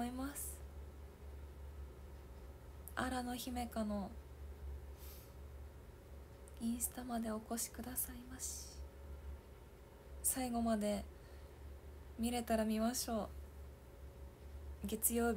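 A young woman talks casually in short bursts, close to a microphone.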